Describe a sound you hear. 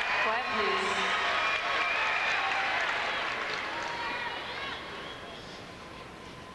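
A large crowd applauds and cheers in a big echoing hall.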